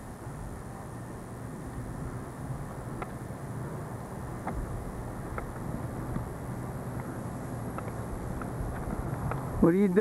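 Water splashes from a garden hose onto wet ground.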